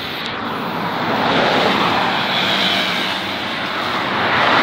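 A spray can hisses in long bursts.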